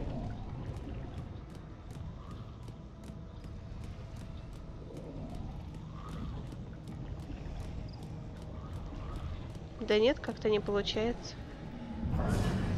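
A cat's paws patter softly and quickly on stone.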